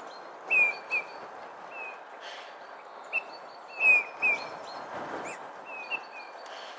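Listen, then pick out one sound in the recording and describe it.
A deer's hooves crunch softly in the snow.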